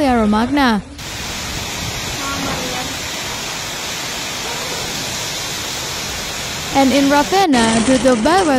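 Heavy hail pours down, hissing and rattling on the street.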